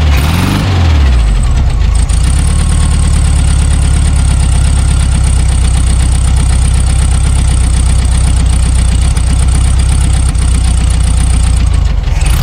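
A car engine idles with a steady, rough rumble.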